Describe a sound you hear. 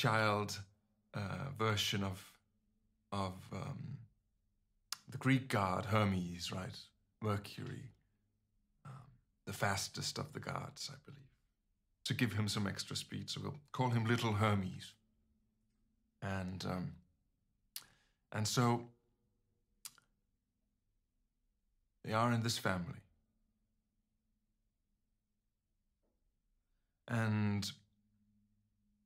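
A young man speaks calmly and with pauses, close to a microphone.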